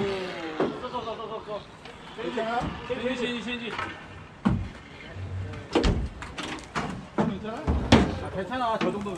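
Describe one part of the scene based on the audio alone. Men talk and call out nearby, outdoors.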